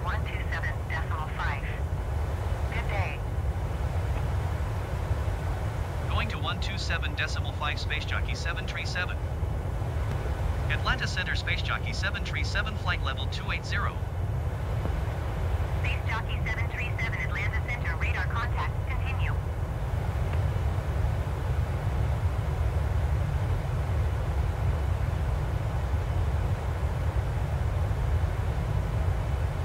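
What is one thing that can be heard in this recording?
A jet engine roars steadily with a deep, low hum inside an airliner cabin.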